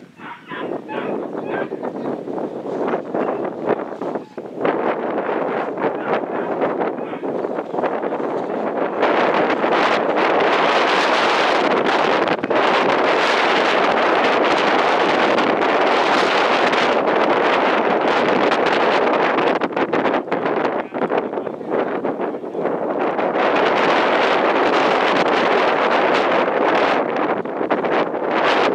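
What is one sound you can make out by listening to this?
Wind buffets the microphone outdoors, growing louder and gustier.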